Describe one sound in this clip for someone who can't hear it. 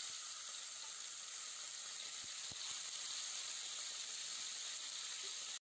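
Meat sizzles loudly in hot oil.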